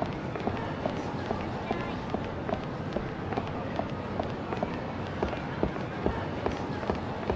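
Footsteps tap steadily on pavement as a man walks briskly.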